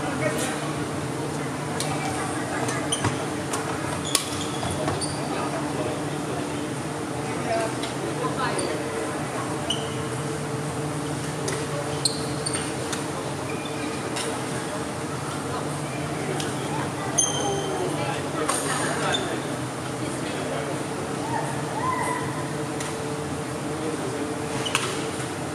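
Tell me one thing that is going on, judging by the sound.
Badminton rackets hit a shuttlecock with sharp pops in a large echoing hall.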